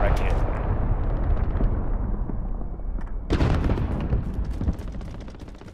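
A rifle fires loud shots that crack and echo.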